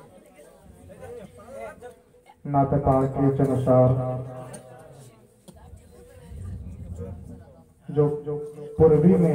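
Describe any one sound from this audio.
A young man chants loudly into a microphone over a loudspeaker, in a reverberant open space.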